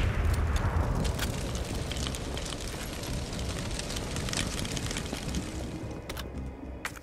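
A fire crackles and pops nearby.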